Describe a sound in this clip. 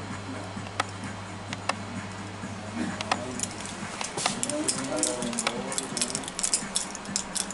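Plastic packaging crinkles and clicks as it is handled close by.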